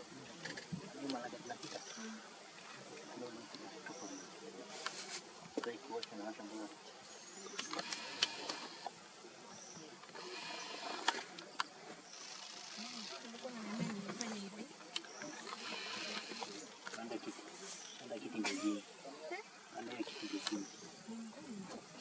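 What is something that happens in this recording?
Leopard cubs growl and snarl softly as they play.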